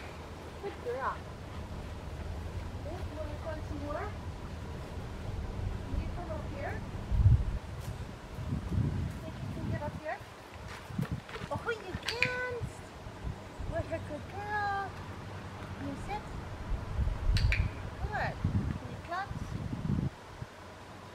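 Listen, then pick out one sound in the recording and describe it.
A woman talks to a dog in a calm, encouraging voice nearby, outdoors.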